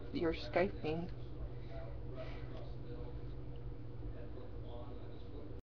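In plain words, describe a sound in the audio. A young woman speaks casually close to a webcam microphone.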